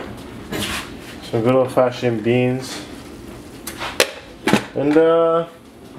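A glass lid clinks against a metal pan.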